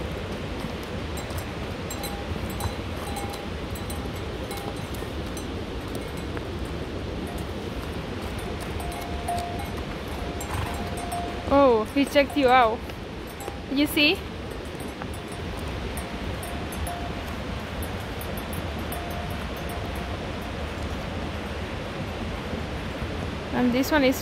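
Hooves clop on a rocky path as mules walk past.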